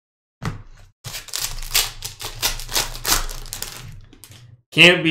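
A foil wrapper crinkles and rustles.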